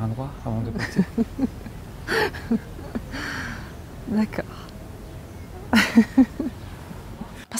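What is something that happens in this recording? A young woman laughs softly, close by.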